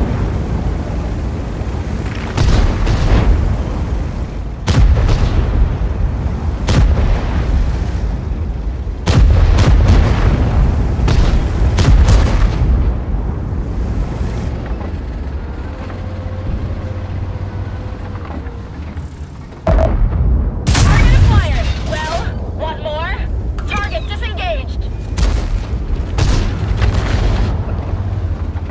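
A heavy tank's tracks clatter over the ground.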